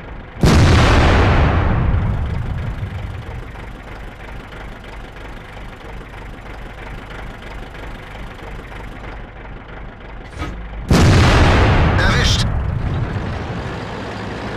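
A tank cannon fires with a loud, deep boom that slowly rolls away.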